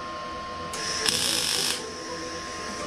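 An electric welding arc crackles and hisses briefly.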